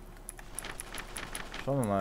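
Paper pages rustle as a book is leafed through.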